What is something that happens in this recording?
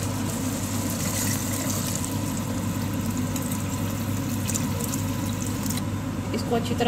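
Water pours into a pan of simmering sauce.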